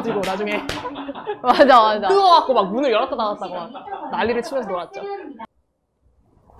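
A young woman talks with animation and laughs close by.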